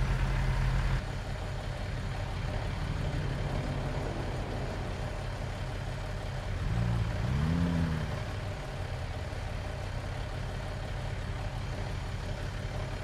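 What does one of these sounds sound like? A truck engine idles outside with a low hum.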